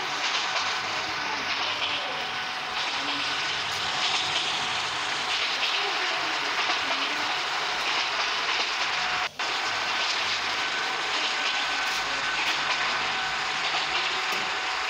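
A train engine rumbles steadily as it rolls along the track.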